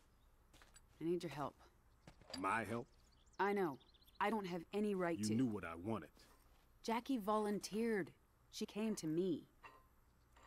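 A woman speaks earnestly, close by.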